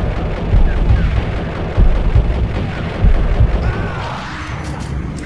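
Pistol shots fire in rapid bursts with booming echoes.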